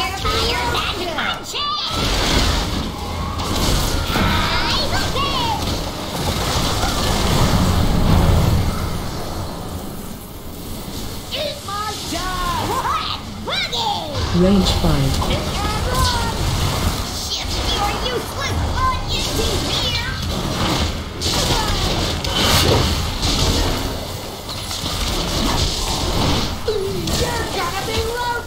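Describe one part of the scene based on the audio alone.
Video game combat sounds clash, with spell effects bursting.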